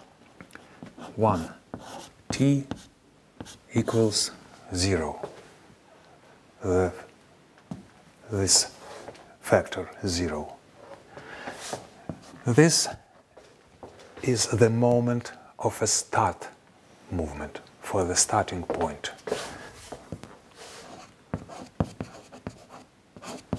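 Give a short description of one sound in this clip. An elderly man speaks calmly and explains, close by through a microphone.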